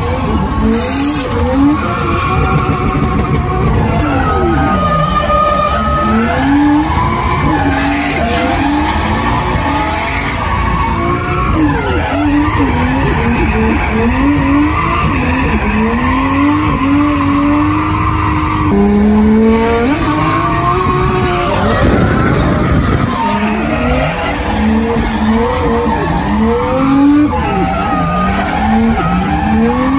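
Tyres squeal on asphalt as a car slides sideways.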